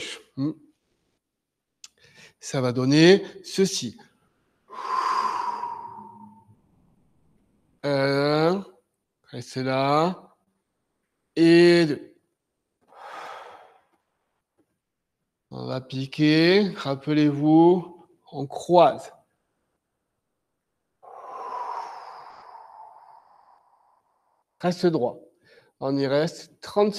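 An elderly man speaks calmly in short phrases nearby.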